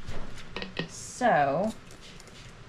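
A spray bottle spritzes water in short hissing bursts.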